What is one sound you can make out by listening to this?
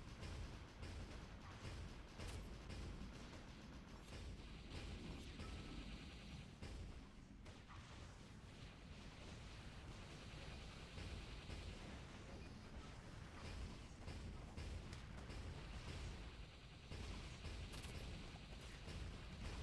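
Energy weapons fire in bursts in a video game battle.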